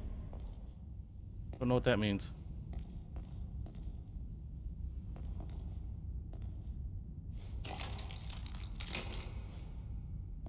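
Soft footsteps creep slowly over a gritty floor.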